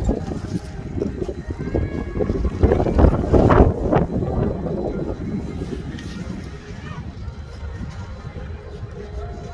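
Skis scrape and hiss over packed snow close by.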